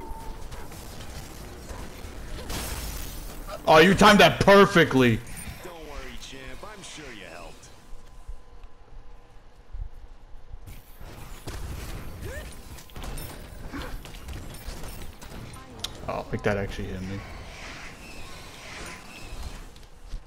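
Magic spells burst and whoosh.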